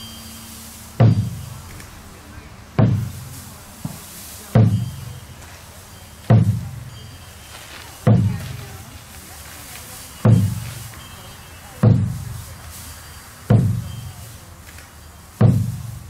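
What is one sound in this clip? A frame drum is struck with deep, booming beats at a slow, even pace.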